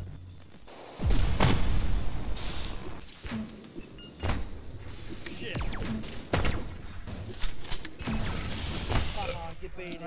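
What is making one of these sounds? Electronic explosions boom and crackle in quick bursts.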